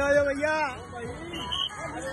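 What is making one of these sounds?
A crowd of men chants together outdoors.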